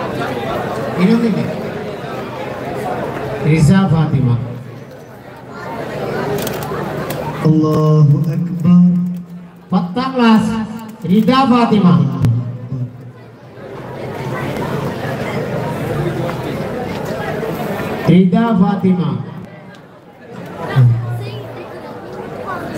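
A man speaks loudly through a loudspeaker in an echoing space.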